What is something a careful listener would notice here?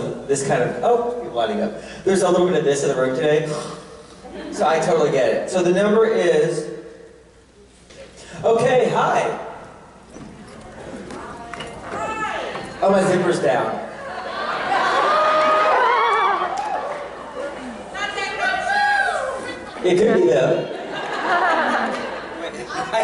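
A man speaks with animation through a microphone and loudspeakers in a large echoing hall.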